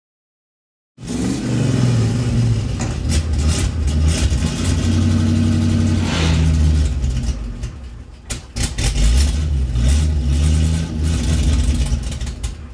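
A truck engine idles with a low, uneven rumble.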